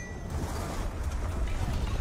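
A woman speaks with alarm.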